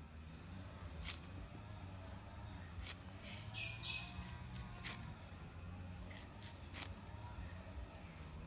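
A knife knocks against a wooden block while slicing fruit.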